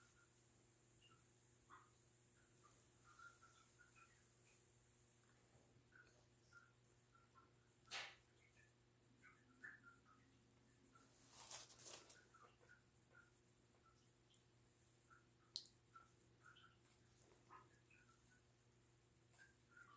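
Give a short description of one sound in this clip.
Fingers squish and smooth wet clay.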